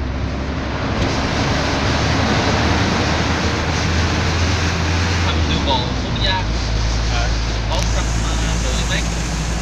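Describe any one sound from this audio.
Traffic roars and echoes inside a tunnel.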